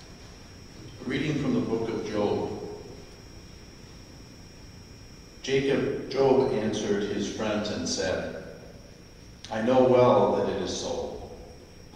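A man reads aloud through a microphone in a large echoing hall.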